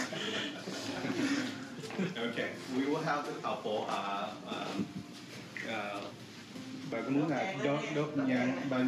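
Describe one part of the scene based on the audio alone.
Several adult men and women talk and chatter nearby.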